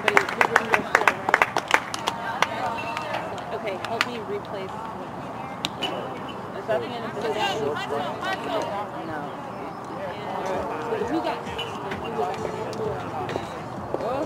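Young women's voices chatter and call out nearby outdoors.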